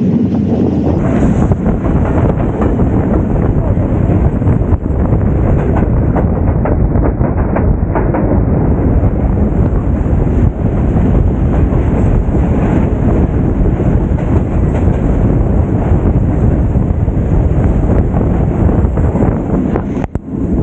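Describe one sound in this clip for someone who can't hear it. Wind roars loudly past an open train door.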